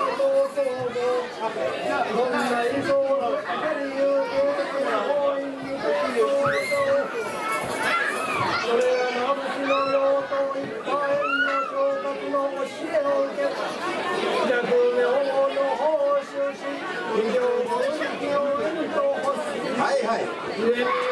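A man chants loudly into a microphone, heard over a loudspeaker in an echoing hall.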